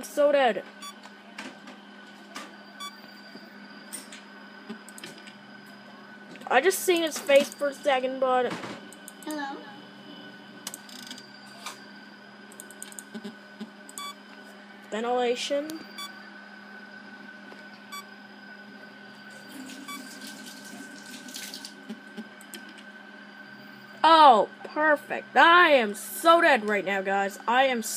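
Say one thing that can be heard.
A computer game gives soft electronic beeps and a low hum.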